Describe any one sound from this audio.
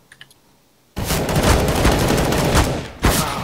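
A submachine gun fires rapid, loud bursts.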